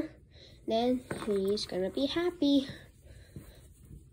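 A plush toy rustles softly as it is turned inside out.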